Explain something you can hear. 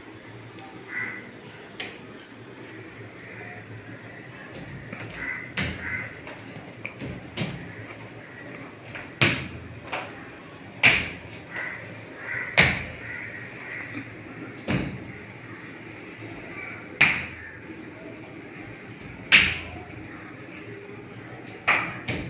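Bare feet stamp on a wooden floor.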